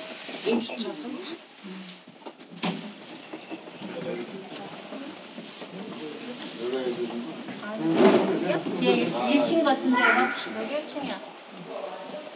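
A lift button clicks softly as a finger presses it.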